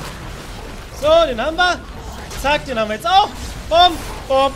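A man shouts excitedly close to a microphone.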